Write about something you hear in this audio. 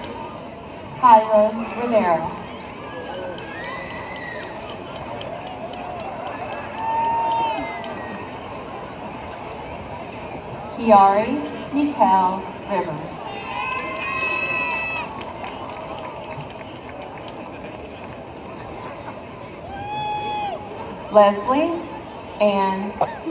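A man reads out names over a loudspeaker outdoors.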